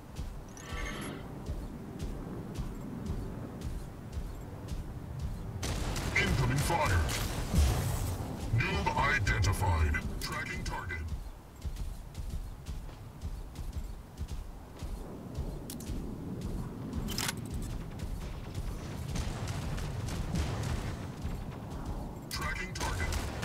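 Heavy robot footsteps clank steadily.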